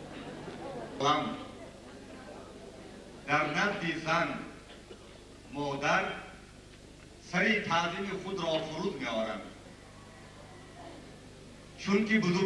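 A middle-aged man speaks into a microphone with animation, heard through loudspeakers.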